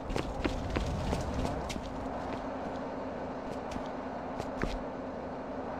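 Footsteps crunch over broken glass.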